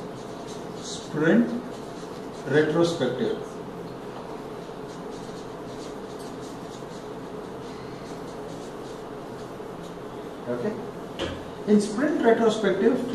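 A man speaks calmly and close by, in short bursts with long pauses.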